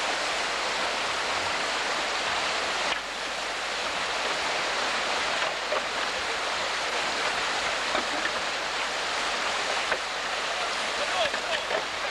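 White water rushes loudly over rocks.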